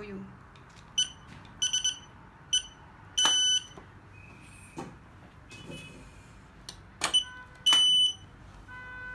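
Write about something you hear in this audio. Electronic devices give short, high beeps as fingers press them.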